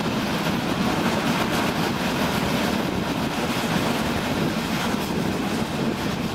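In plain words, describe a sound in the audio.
A train rumbles steadily along the tracks, heard up close from an open window.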